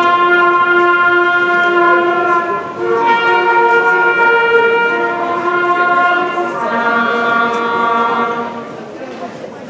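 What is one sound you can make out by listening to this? A woman sings long sustained notes through loudspeakers in a large hall.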